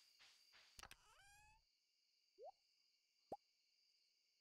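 Soft chiming blips sound.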